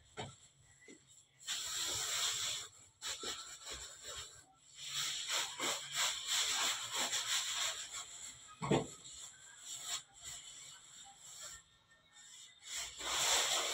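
Hands pat and press soft dough on a floured surface.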